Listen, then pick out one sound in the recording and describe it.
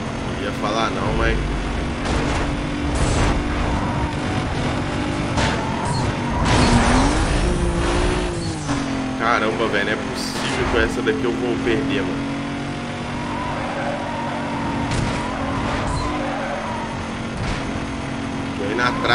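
A race car engine roars at high speed.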